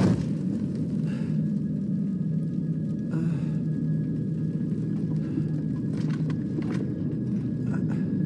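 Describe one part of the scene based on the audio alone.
A young man groans and speaks breathlessly, close by.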